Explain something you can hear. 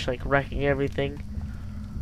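A fire crackles in a fireplace.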